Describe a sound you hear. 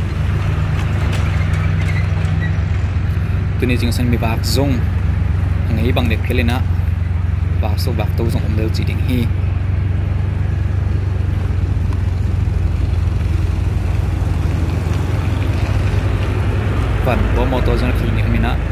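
A motorbike engine hums steadily up close.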